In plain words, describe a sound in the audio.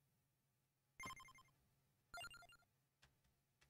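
Short electronic menu chimes sound.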